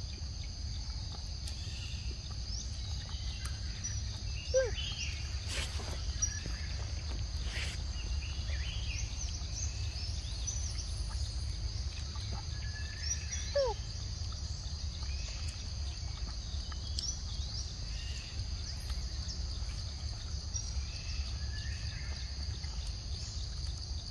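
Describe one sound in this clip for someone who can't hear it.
Monkeys chew and smack on soft fruit close by.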